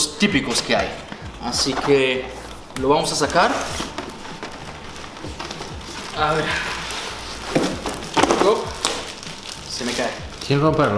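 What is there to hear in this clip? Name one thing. Cardboard packaging rustles and scrapes as a man unpacks a box.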